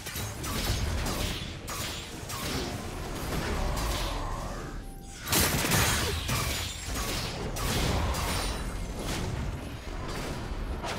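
Game spell effects whoosh and crackle in a fast battle.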